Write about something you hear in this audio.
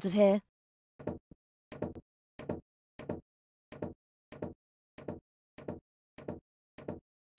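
Footsteps clatter steadily up stairs.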